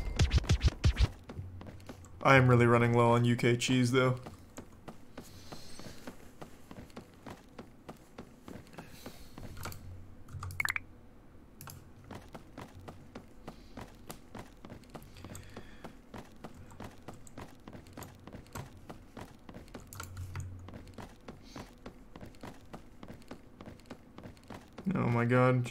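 Footsteps tap steadily on wooden boards.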